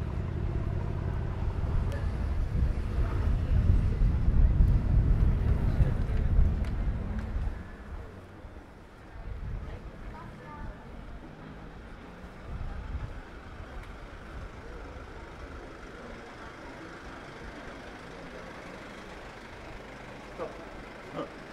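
Distant voices of passers-by murmur along a busy street.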